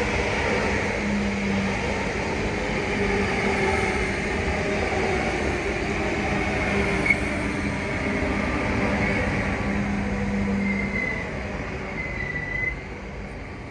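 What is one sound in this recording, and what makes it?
Train wheels squeal and hum on the rails.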